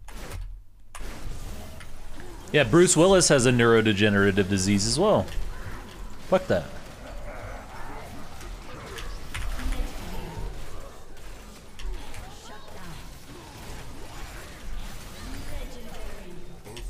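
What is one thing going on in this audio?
Magic spell effects whoosh and crackle in a hectic video game battle.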